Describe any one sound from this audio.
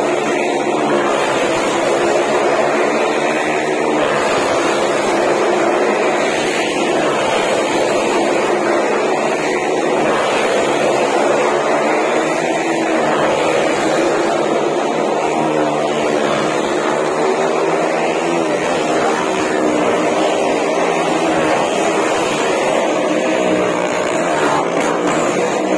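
A motorcycle engine roars loudly, circling around and around inside an echoing wooden drum.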